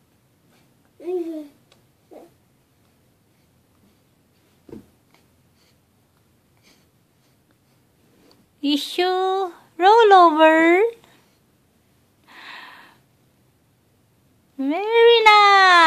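A baby squeals and babbles in high-pitched bursts.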